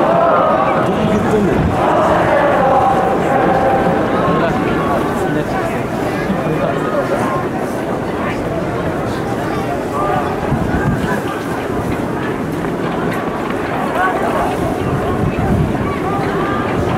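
A large crowd of spectators chants and cheers loudly in an open stadium.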